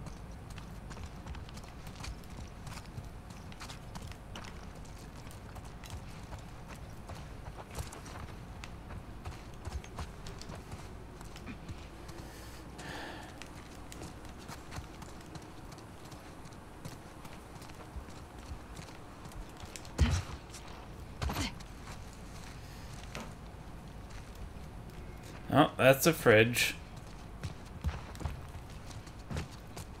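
Footsteps shuffle softly over a hard floor.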